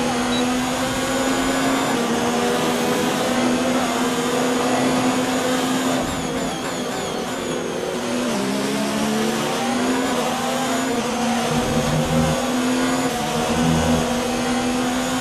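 A racing car engine whines loudly at high revs, dropping in pitch when braking and rising again when accelerating.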